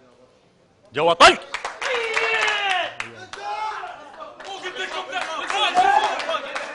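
A man talks loudly and forcefully to a group.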